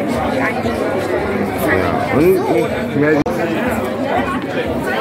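A crowd of young people chatters nearby, outdoors.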